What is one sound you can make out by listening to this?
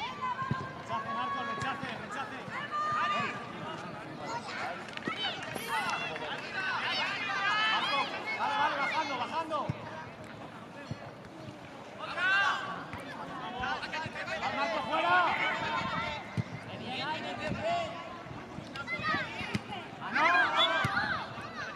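Children shout and call out excitedly across an open field.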